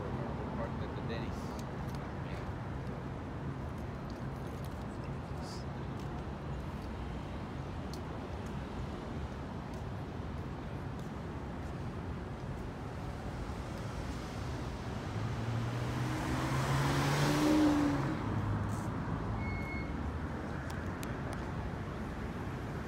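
Traffic rumbles steadily on a city street outdoors.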